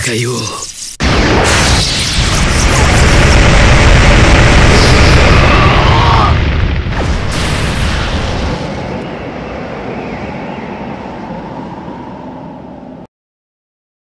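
A loud explosion booms and rumbles, slowly fading.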